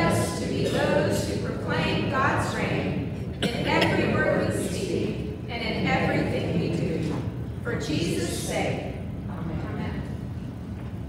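A woman speaks calmly into a microphone in an echoing hall.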